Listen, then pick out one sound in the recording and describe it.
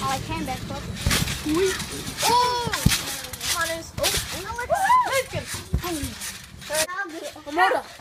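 Children shout and laugh excitedly outdoors.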